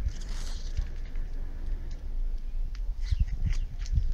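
Leaves rustle and brush close by.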